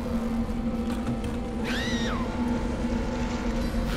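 A creature shrieks loudly.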